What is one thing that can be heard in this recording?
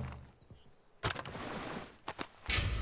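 Gear rustles as hands rummage through a pack.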